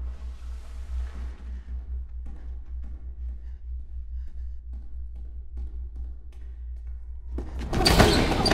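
Footsteps echo slowly down a hallway.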